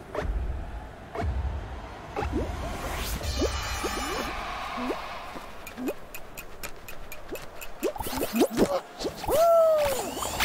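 Cartoonish game sound effects boing and squeak as figures jump about.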